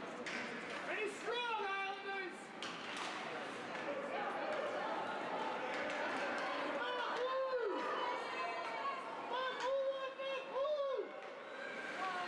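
Young players shout to each other across the ice.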